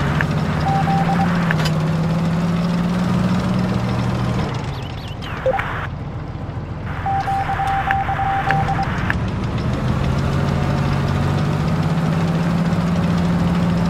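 Tank tracks clank and rattle over the ground.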